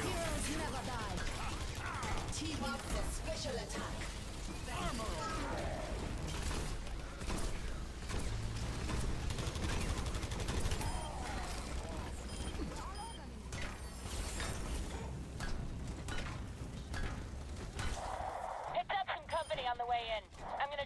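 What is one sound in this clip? Heavy gunfire rattles in rapid bursts.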